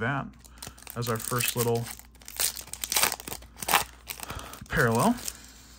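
Foil wrapping tears and crinkles close by.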